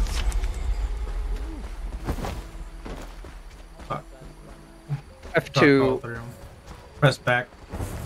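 Footsteps run over grass.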